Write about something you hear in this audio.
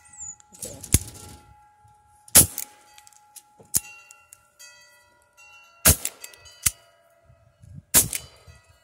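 A revolver's hammer clicks sharply several times.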